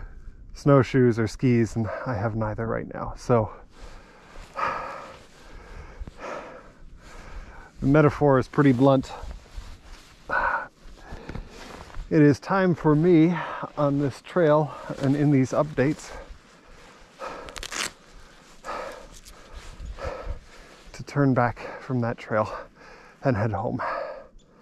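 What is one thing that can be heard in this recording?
A man speaks calmly, very close to the microphone.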